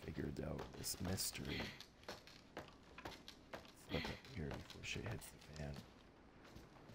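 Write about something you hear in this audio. Footsteps thud and creak on wooden stairs close by.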